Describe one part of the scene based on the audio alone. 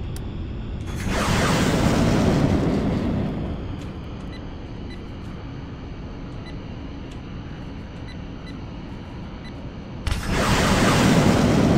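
Wind rushes loudly past the aircraft in bursts.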